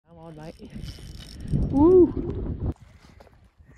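A fishing reel clicks as line is reeled in.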